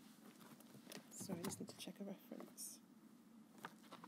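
Paper rustles as pages are turned.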